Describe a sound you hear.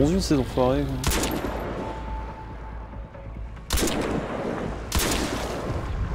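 A rifle fires loud shots in a game.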